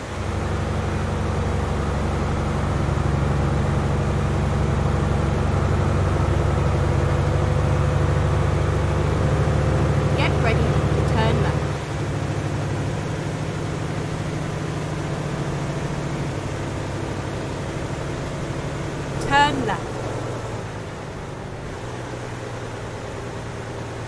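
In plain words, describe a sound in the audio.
A heavy truck engine hums steadily as the truck drives along.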